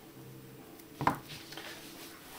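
A cardboard box is set down on a table with a soft knock.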